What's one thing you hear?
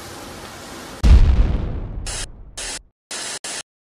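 A bomb explodes with a deep boom that fades away.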